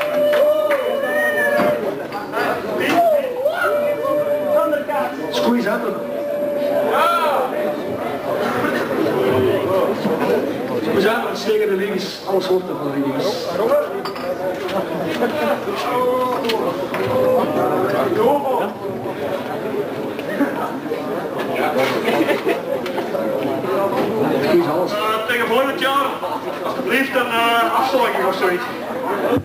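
A rock band plays loudly in an echoing hall.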